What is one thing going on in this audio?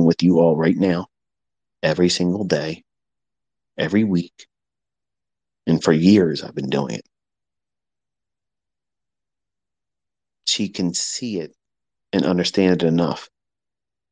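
A man speaks in short bursts, close to a microphone.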